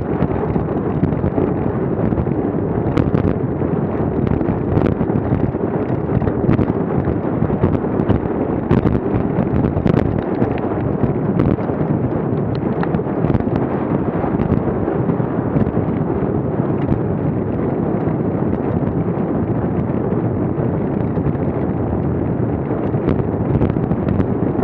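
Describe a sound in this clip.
Wind rumbles steadily against the microphone.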